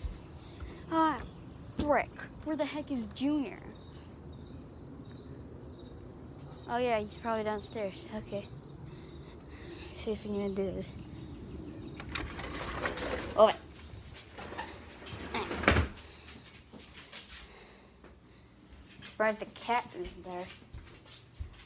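A young girl talks animatedly close by.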